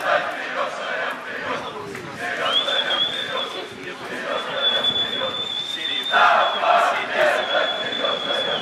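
A crowd of spectators shouts and chatters outdoors.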